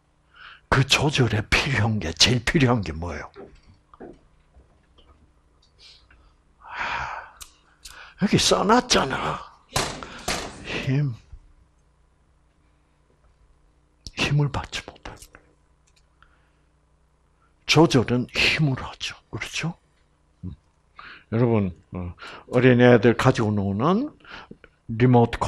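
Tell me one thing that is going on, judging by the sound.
An elderly man lectures with animation through a headset microphone, in bursts with pauses.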